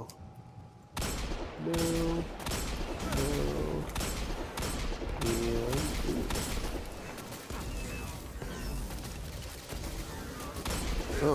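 A rifle fires rapid repeated shots.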